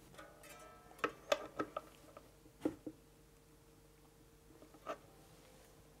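Metal strings click and scrape under a tool.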